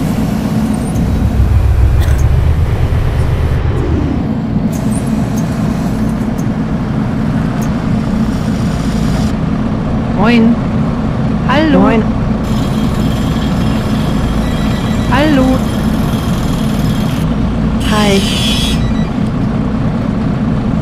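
A bus engine idles with a low, steady hum.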